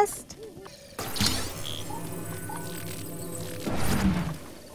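A bright chime rings out as a treasure chest opens.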